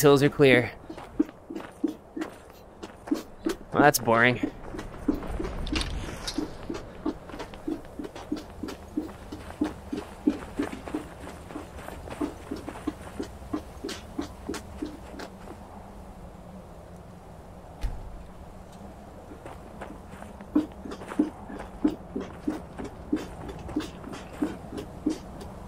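Feet shuffle and thud in a walking rhythm on a low-friction treadmill.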